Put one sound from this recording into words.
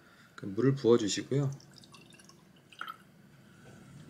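Water trickles into a metal pot.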